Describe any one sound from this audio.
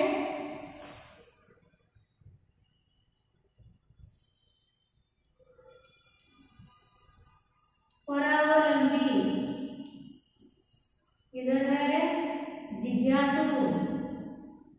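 A woman speaks clearly and slowly, as if teaching.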